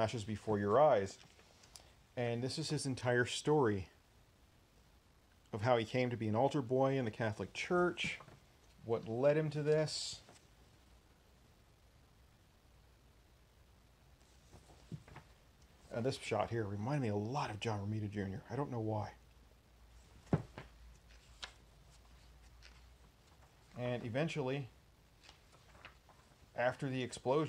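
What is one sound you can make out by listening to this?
Paper pages rustle and flip as they are turned.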